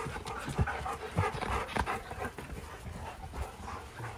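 A dog pants close by.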